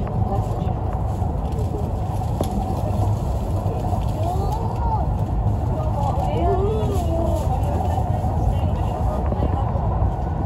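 A train hums and rumbles steadily at speed.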